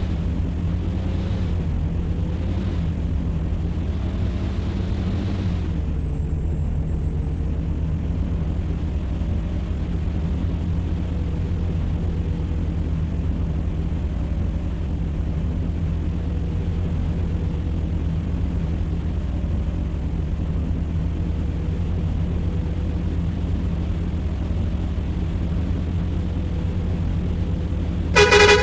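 A diesel truck engine drones while cruising.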